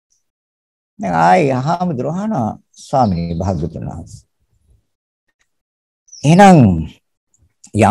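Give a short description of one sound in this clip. An elderly man speaks calmly and slowly through an online call, with long pauses.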